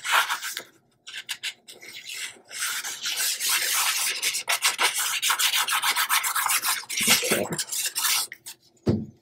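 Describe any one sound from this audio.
A glue bottle scrapes and squeaks across paper.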